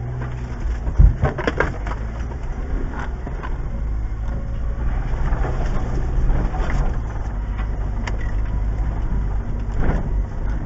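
A vehicle's body rattles and knocks over bumps.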